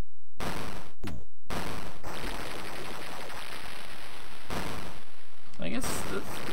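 An arcade game crashes and rumbles as a monster smashes a building.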